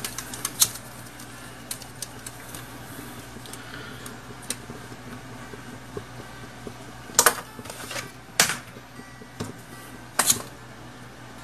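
A lighter clicks as it is struck.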